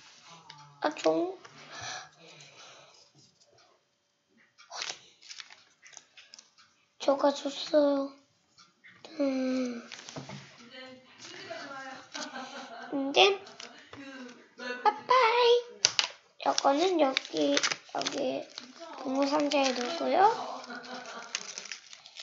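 Paper rustles on a table.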